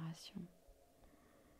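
A middle-aged woman speaks softly into a close microphone.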